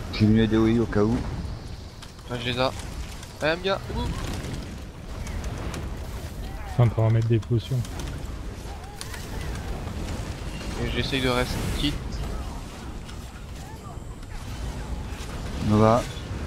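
Magic spells crackle and boom in a chaotic battle.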